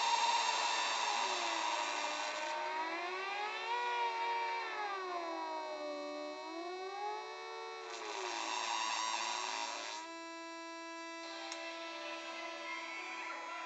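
A synthesizer drones with buzzing, gliding tones that swoop up and down as knobs are turned.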